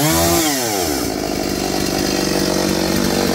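A chainsaw engine idles with a low rattling putter.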